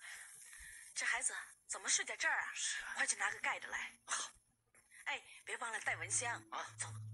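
A woman speaks urgently nearby.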